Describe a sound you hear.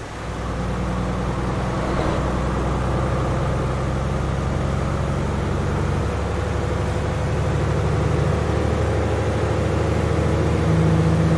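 A truck engine drones steadily and rises slightly in pitch.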